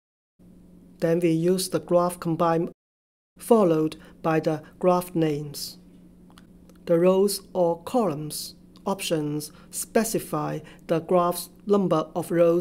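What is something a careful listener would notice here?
A man speaks calmly and steadily into a close microphone.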